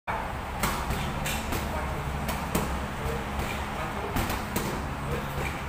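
Punches and kicks smack sharply against padded mitts in an echoing room.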